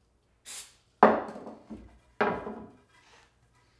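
Wooden boards knock against each other.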